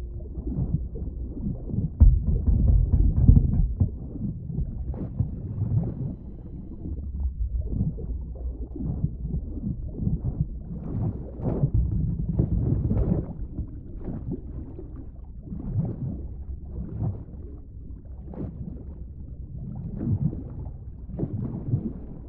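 Water rumbles and churns in a low, muffled way, as if heard underwater.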